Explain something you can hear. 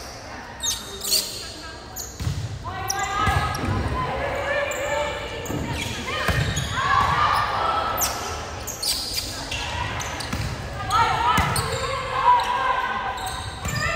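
Players' shoes squeak on a gym floor.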